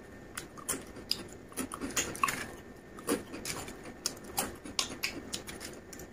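A man crunches crispy snacks loudly and close by.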